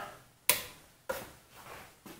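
A switch clicks a few times.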